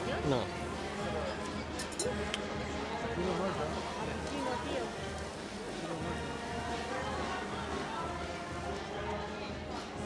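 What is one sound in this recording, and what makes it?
A hot horseshoe hisses and sizzles against a hoof.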